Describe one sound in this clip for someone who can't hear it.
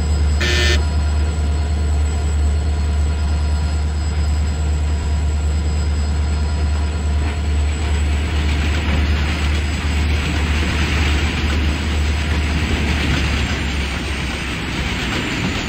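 A diesel locomotive engine hums steadily at low pitch, then fades.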